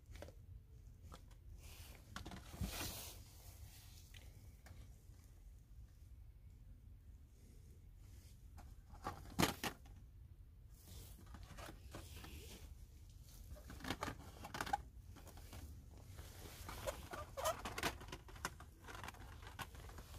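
Plastic toy packages rustle and clack as they are handled.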